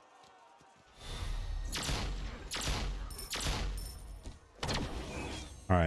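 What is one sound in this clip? Sword strikes and magic blasts whoosh and crash in a game.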